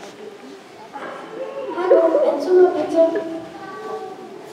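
A young girl speaks clearly in a large echoing hall.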